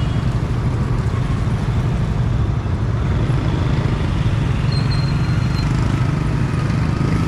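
Motorbike engines hum and putter close by in busy street traffic.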